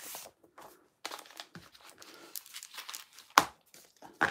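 Plastic packets rustle and crinkle as they are handled.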